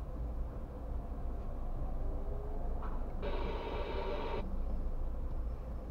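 A tram rolls by across the road.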